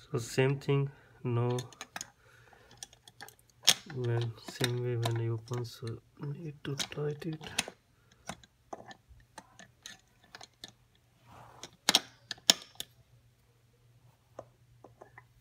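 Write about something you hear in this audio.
Metal pliers click and clink against bolts.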